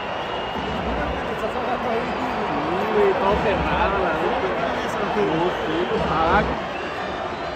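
A stadium crowd chants and sings together loudly.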